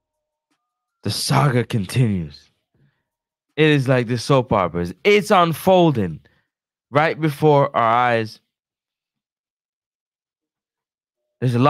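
A young man speaks with animation into a close microphone, with pauses between phrases.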